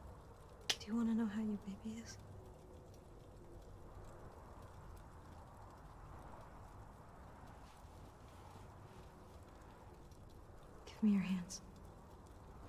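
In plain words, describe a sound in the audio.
A young woman asks a question quietly, close by.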